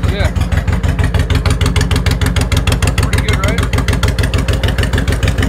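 A motorcycle engine idles with a loud, fast, throbbing rumble close by.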